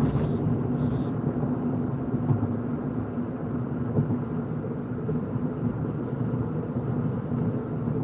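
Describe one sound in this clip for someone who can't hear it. A car engine hums steadily from inside as the car drives.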